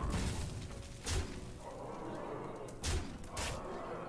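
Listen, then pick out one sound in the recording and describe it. A pitched musical chime rings out.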